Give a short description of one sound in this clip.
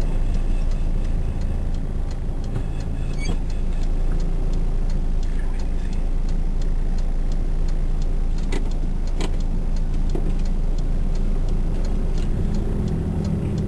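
Tyres roll on the road with a low rumble.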